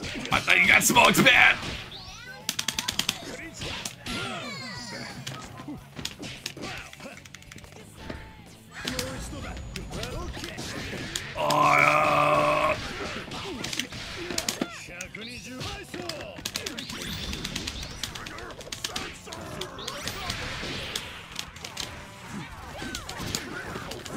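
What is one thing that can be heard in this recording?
Punches and kicks smack and thud in quick bursts.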